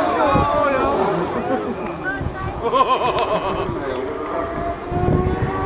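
A racing car's engine roars loudly as it speeds past, shifting pitch.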